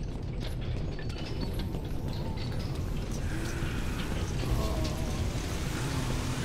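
Footsteps scrape on stone in a large echoing space.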